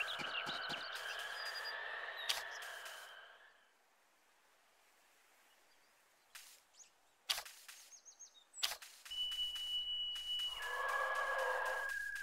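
Light footsteps patter quickly over grass.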